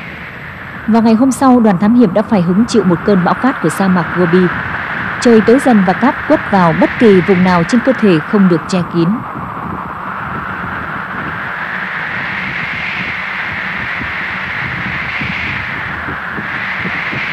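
Strong wind howls and gusts outdoors, blowing sand.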